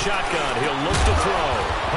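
Football players collide in a tackle.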